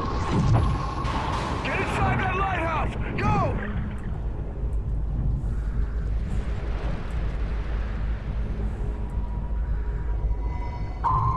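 Deep water rumbles steadily all around.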